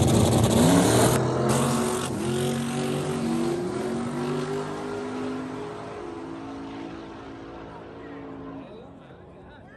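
A truck roars away at full throttle and fades into the distance.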